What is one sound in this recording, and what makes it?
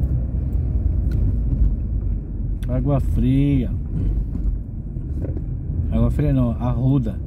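Tyres rumble over the road.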